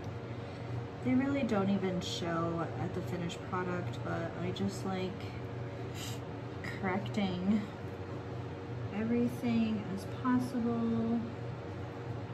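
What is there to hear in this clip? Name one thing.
A woman talks calmly up close.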